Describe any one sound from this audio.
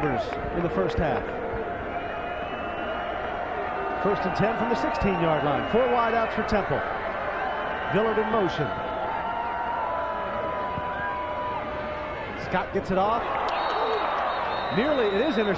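A large crowd in a stadium cheers and roars.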